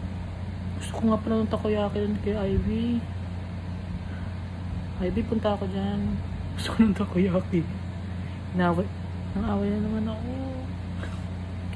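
A woman speaks in short phrases close to a phone microphone.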